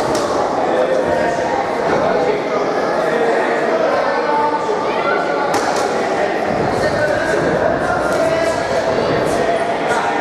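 A crowd chatters and calls out throughout a large echoing hall.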